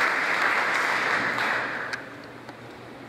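An audience applauds loudly, then the clapping dies away.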